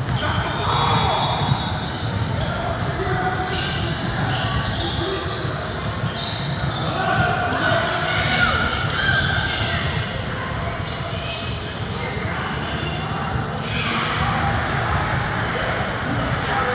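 Voices of a small crowd murmur and call out in an echoing gym.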